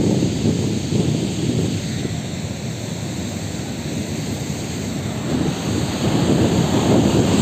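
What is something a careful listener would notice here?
Wind blows hard across the microphone.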